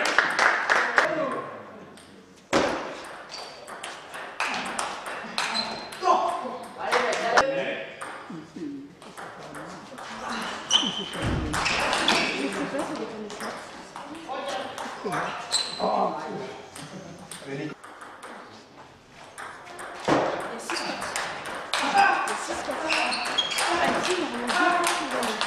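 A table tennis ball clicks back and forth off paddles and the table in quick rallies.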